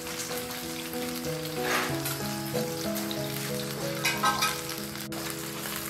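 Oil sizzles in a hot pan.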